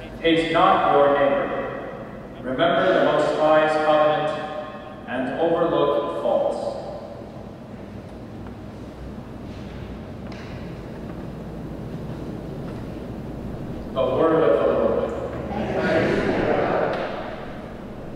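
A young man speaks calmly into a microphone in a large echoing room.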